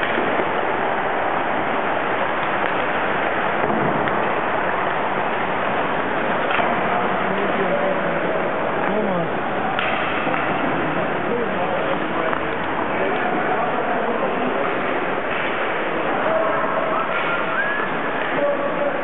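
Young players chatter and call out in a large echoing rink.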